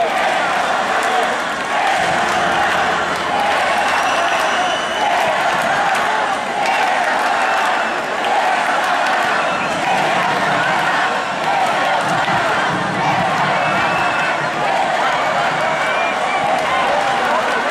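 A man sings through loudspeakers.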